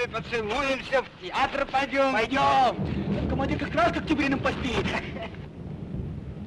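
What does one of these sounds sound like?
A man shouts urgently close by.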